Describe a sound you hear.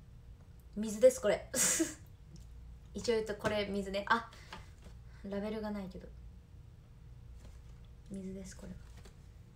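A plastic bottle crinkles in a woman's hands.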